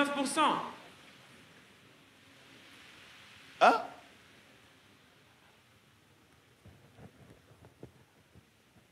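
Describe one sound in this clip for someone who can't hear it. A middle-aged man speaks loudly into a microphone in short exclamations, then more quietly.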